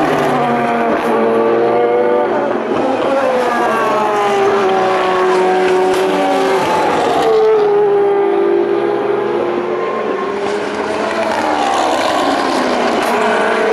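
Racing car engines roar loudly as they speed past, their pitch rising and falling.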